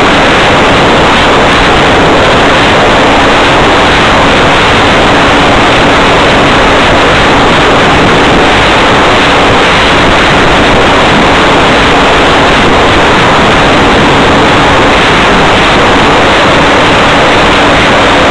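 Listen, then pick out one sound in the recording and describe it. A small propeller motor hums steadily.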